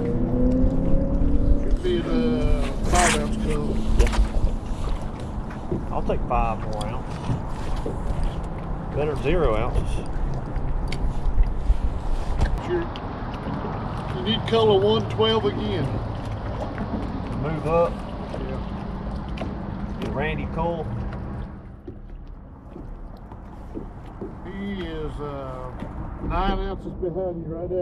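A man talks with excitement close to a microphone.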